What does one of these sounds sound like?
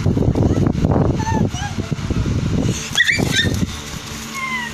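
A small child babbles and squeals.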